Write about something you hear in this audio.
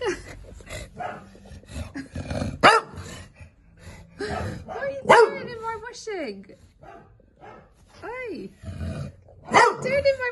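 A cloth sheet rustles as a dog moves under it.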